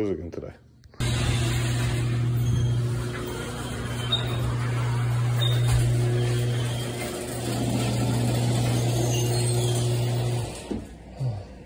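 A garage door opener hums steadily as the door rolls up.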